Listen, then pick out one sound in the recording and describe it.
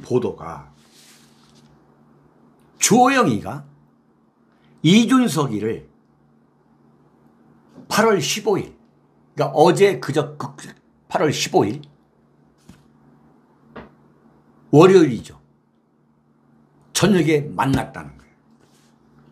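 A middle-aged man speaks into a close microphone with animation, in short bursts.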